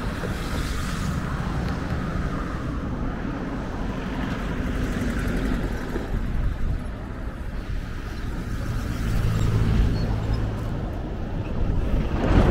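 Strong wind blows and rumbles outdoors.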